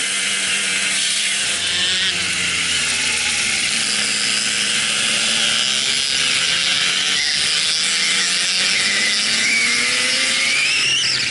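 A kart engine buzzes loudly up close, its pitch rising and falling with the throttle.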